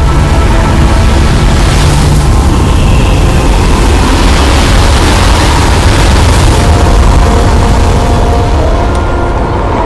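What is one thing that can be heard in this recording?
A strong wind roars and howls through a sandstorm.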